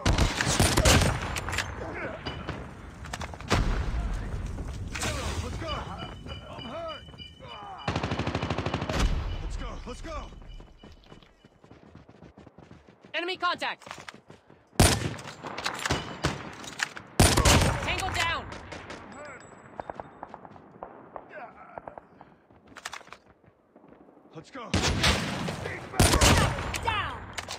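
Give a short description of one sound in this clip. Sniper rifle shots crack sharply, echoing afterward.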